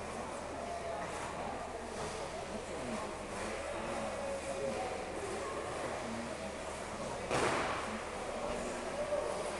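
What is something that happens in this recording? Skate blades scrape and swish across ice.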